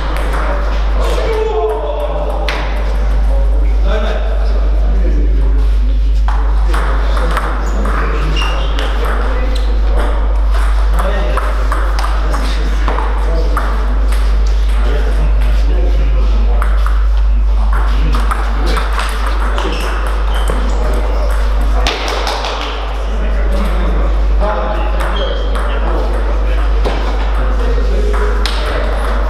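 Ping pong balls click rapidly off paddles and tables in a large echoing hall.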